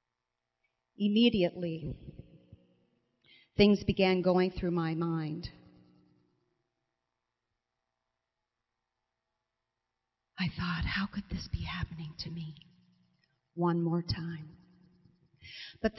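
A woman sings softly into a microphone, in phrases with pauses between them.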